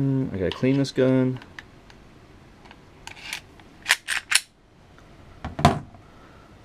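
A pistol slide clicks and snaps into place.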